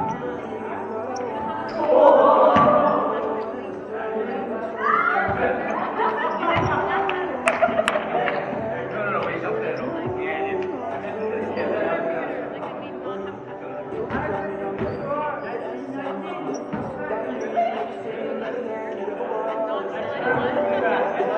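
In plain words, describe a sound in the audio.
Voices of several young people chatter and call out throughout, echoing in a large hall.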